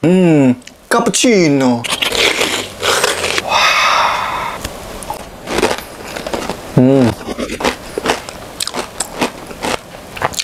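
A young man smacks his lips while tasting food.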